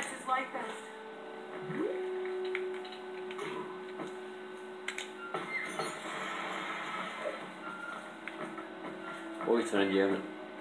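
Short video game sound effects chime and clatter through a television speaker.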